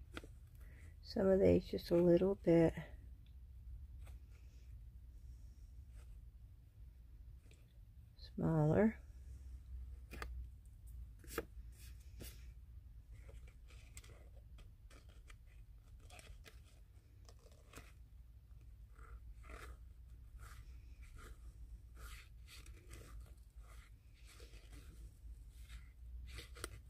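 Scissors snip through paper in short, crisp cuts.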